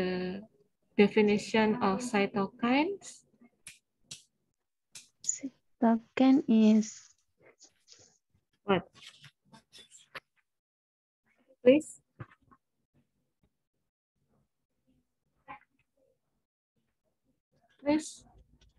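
A woman speaks calmly into a microphone, in short bursts with pauses.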